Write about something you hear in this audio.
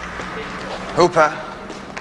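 A man calls out loudly in an echoing hall.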